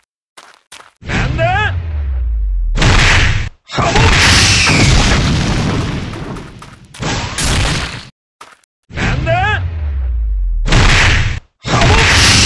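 Electric blasts crackle and boom.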